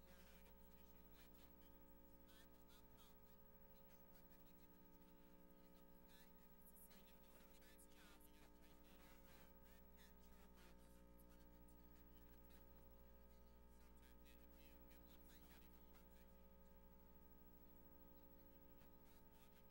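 Men murmur in conversation at a distance in a large room.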